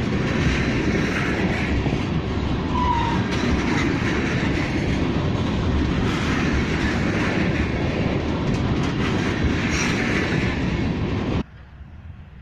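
A long freight train rumbles loudly past close by, its wheels clattering on the rails.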